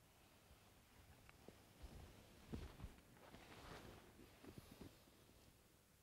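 Fabric rustles softly as a body is moved on a mat.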